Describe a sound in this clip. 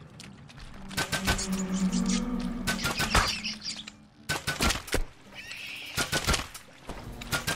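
Weapon blows strike a creature with sharp thuds.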